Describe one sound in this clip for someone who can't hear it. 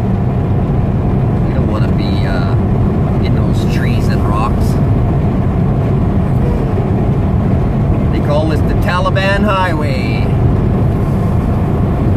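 Tyres roar on the road.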